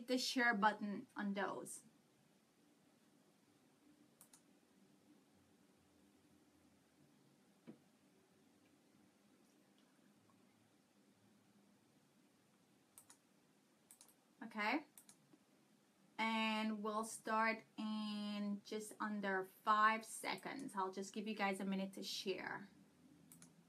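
A woman speaks close to a microphone, with animation, pausing now and then.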